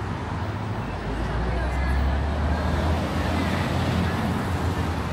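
A bus engine hums low and close by.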